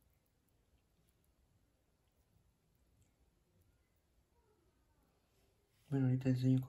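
Soft slime squishes and squelches between fingers.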